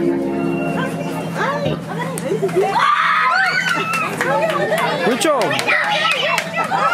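Young children chatter and squeal excitedly nearby.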